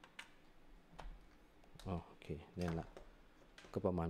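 A small plastic device clatters as it is set down.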